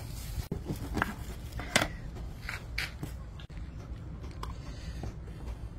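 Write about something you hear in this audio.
A knife chops limes on a wooden board.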